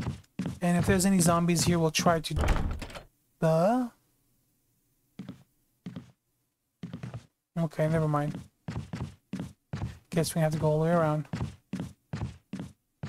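Footsteps run quickly across a hard wooden floor.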